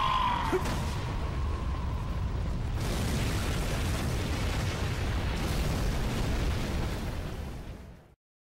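A huge explosion booms and rumbles on, slowly fading.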